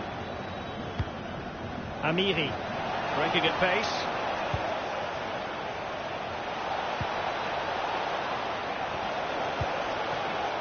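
A football is kicked with short, dull thuds.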